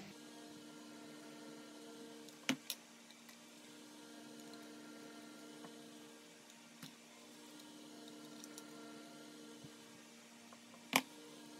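A screwdriver clicks and scrapes against hard plastic parts.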